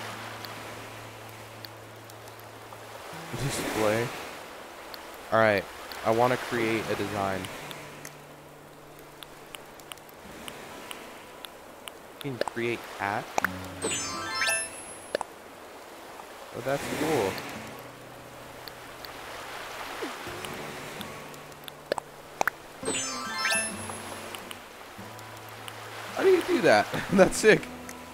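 Gentle waves wash onto a shore again and again.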